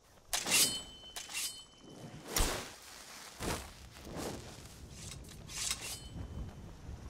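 A magic spell crackles and whooshes in bursts.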